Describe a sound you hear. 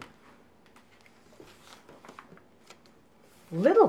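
A page of a book is turned with a papery rustle.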